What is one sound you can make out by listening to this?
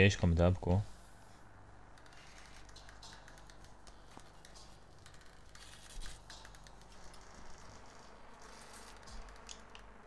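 Soft footsteps shuffle slowly across a hard floor.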